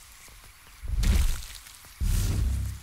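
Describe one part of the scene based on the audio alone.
A large blast bursts with a heavy rumble.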